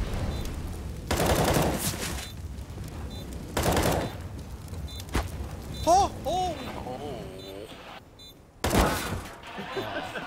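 Rifle shots fire in loud bursts.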